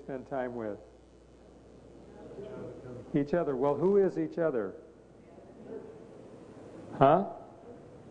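An elderly man speaks with animation in a large echoing room.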